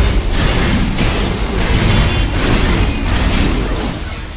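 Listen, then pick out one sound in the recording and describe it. Metal blades clash and slash rapidly.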